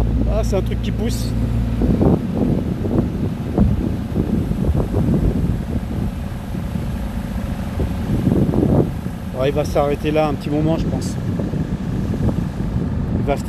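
A boat engine rumbles steadily below.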